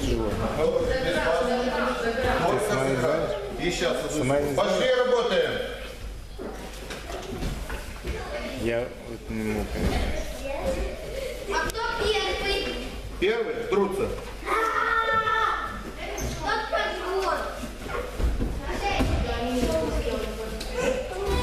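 Children talk and call out nearby in an echoing hall.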